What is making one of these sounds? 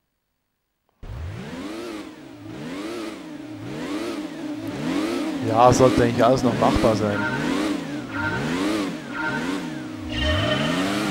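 A racing car engine revs up and down repeatedly while idling.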